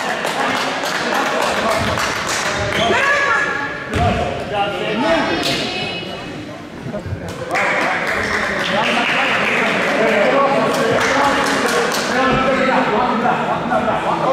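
Young players shout and call out across an echoing hall.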